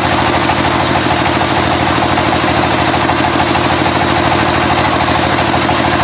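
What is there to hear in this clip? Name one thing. A diesel engine chugs loudly and steadily close by.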